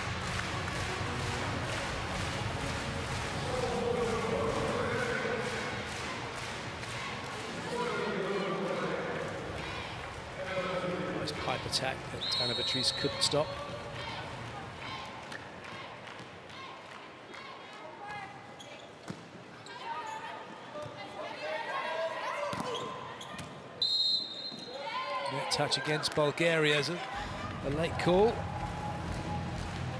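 A large crowd cheers and chants in an echoing arena.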